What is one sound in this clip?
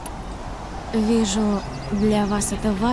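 A young woman speaks softly and earnestly.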